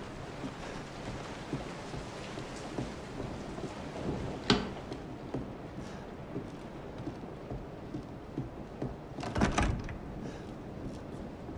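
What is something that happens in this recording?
Footsteps creak slowly on wooden floorboards.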